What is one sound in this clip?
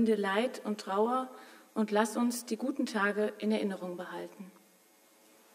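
A woman speaks calmly into a microphone in a room with some echo.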